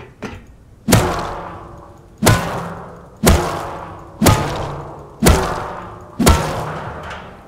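A rock strikes a metal barrel in a series of loud, ringing clangs.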